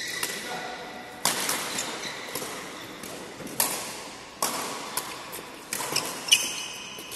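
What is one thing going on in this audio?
Hits and squeaks echo around a large indoor hall.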